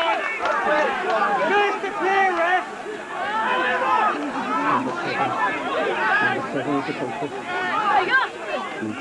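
A crowd of spectators shouts and calls out outdoors.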